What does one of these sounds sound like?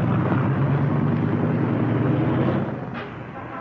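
A car engine hums as a car pulls away down a street.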